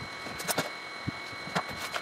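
A plastic box rattles as a man handles it.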